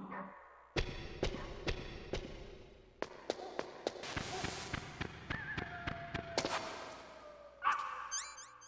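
Footsteps crunch quickly on snow.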